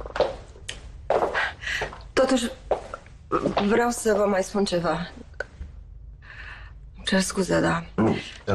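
A middle-aged woman speaks calmly and firmly.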